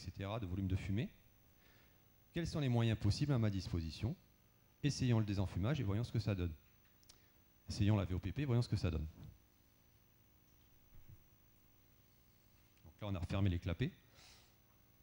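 A man speaks through a microphone and loudspeakers in a large hall, in short phrases with pauses.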